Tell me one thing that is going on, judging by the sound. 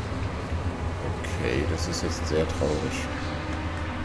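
A man speaks briefly into a headset microphone.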